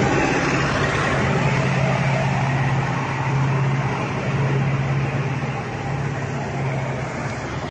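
A heavy truck's engine roars as it drives past.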